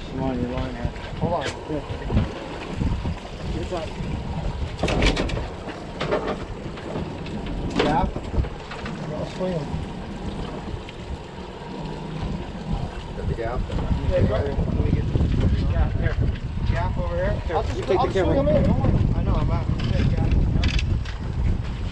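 Men talk nearby.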